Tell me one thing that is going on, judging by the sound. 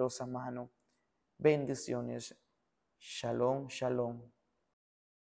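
A young man speaks calmly into a close microphone, in short phrases.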